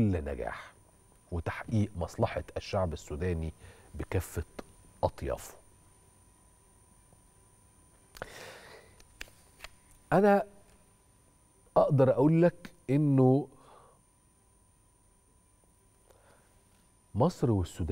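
A man speaks calmly and clearly into a microphone, with pauses.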